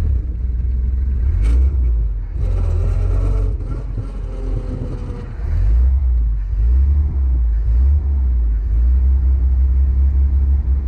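Wind buffets and rumbles against the microphone.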